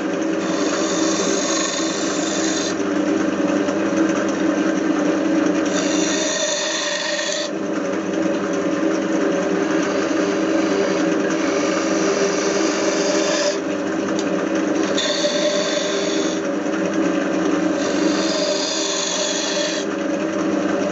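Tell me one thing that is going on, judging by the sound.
A chisel scrapes and hisses against spinning wood in bursts.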